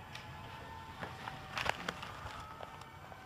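A newspaper rustles.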